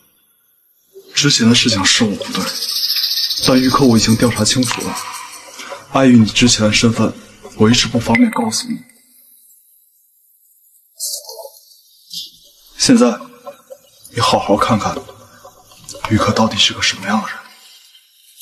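A young man speaks calmly and firmly, close by.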